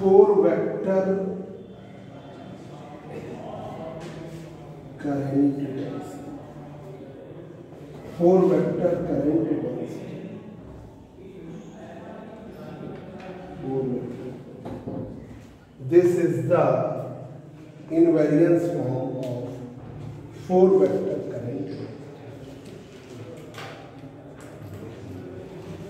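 A man speaks steadily in a lecturing tone, close by, in short bursts with pauses.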